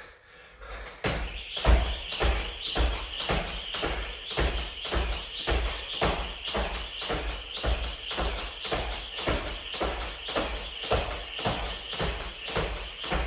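Feet land softly on the floor with each jump.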